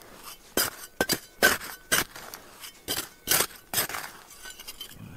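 A metal trowel scrapes and digs into dry stony soil.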